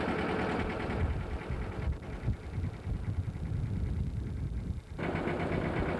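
Wind buffets loudly in gusts outdoors.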